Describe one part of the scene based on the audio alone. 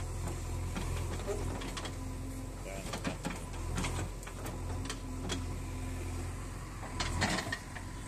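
Soil and stones clatter from a digging bucket.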